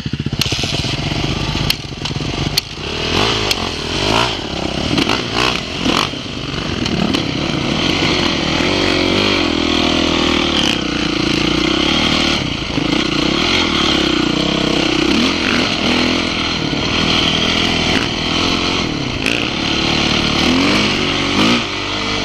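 A dirt bike engine revs as the bike rides along a dirt track.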